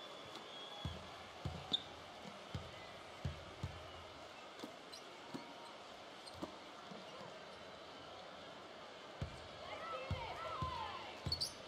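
A basketball bounces on a hardwood floor with dull thumps.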